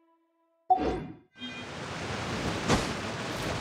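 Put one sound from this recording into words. A figure lands with a soft thud.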